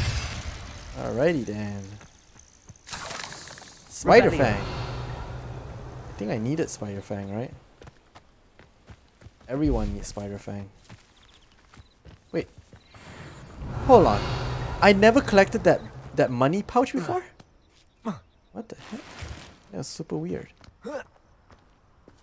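A young man talks with animation into a microphone, close and clear.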